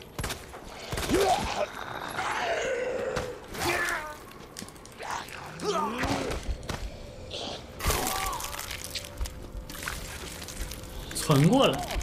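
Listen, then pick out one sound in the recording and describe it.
A zombie groans and snarls hoarsely.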